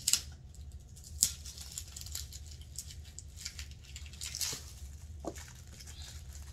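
Plastic wrapping crinkles and rustles as a handbag is handled.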